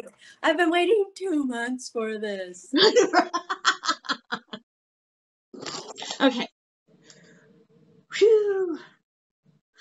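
A girl laughs close by.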